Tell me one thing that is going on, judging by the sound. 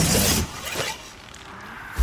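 A magic spell shimmers and chimes.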